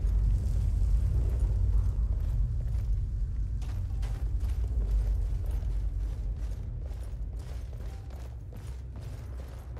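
Footsteps tread on stone in an echoing cave.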